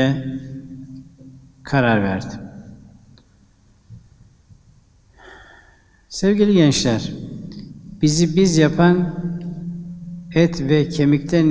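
An elderly man speaks slowly and calmly into a microphone, pausing between phrases.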